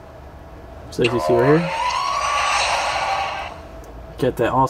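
A phone plays a whooshing startup sound.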